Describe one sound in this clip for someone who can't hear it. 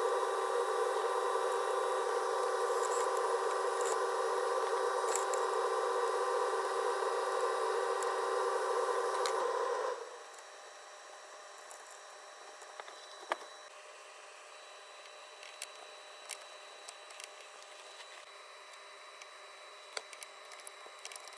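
A cotton swab scrapes and taps lightly against small plastic parts.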